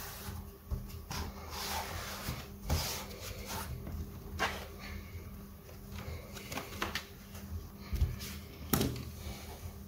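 A laptop lid clatters as it is handled and opened.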